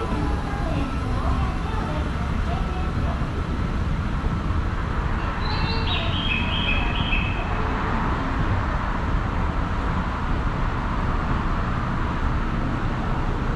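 An escalator hums and rumbles steadily as it moves.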